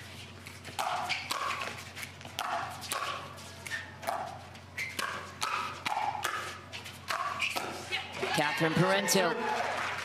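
Paddles strike a plastic ball with sharp hollow pops in a rally.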